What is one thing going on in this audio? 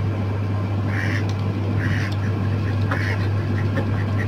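Ducks quack loudly nearby.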